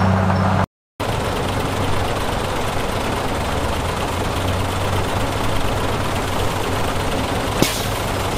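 A bulldozer engine rumbles steadily.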